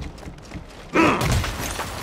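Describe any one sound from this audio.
A blade slashes and strikes with a sharp crunch.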